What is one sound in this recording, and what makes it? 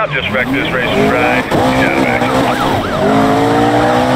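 Tyres screech as a car skids and slides.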